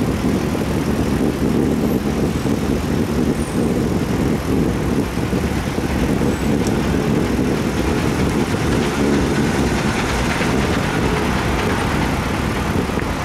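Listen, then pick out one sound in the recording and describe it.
Wind rushes loudly past while riding.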